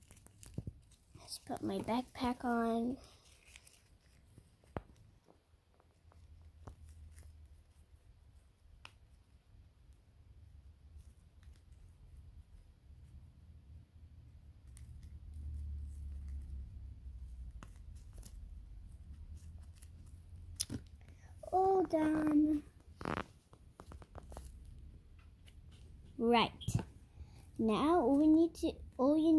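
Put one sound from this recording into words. Soft plush toys rustle and brush together in someone's hands.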